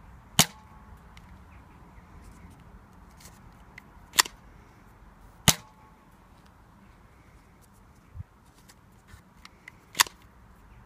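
A toy dart blaster fires with a sharp snap.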